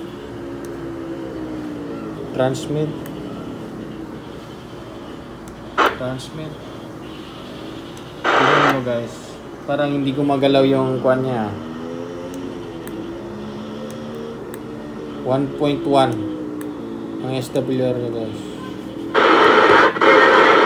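A radio plays a warbling, wavering tone through its loudspeaker.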